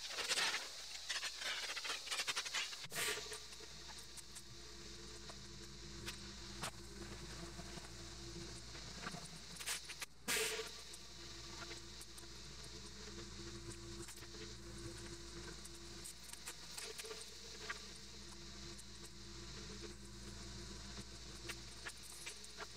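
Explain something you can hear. A pressure washer sprays water with a loud hiss.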